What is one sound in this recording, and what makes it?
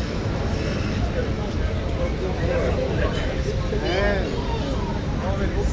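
Adults chat casually nearby outdoors.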